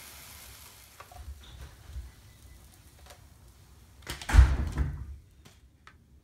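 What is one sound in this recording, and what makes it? A knife scrapes a waffle onto a plate.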